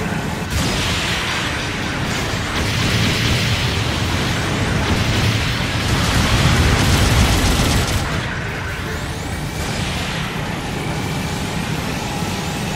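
Rocket thrusters roar.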